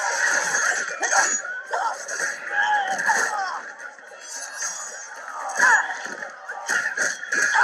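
Blows land with sharp thuds during a scuffle.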